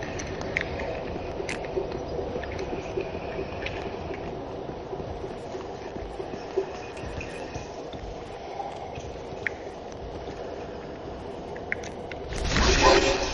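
Armoured footsteps clink and thud on stone and wooden floors.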